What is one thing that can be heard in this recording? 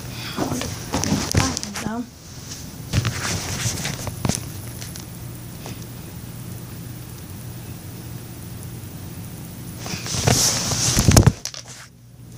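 A phone rustles and bumps in a hand.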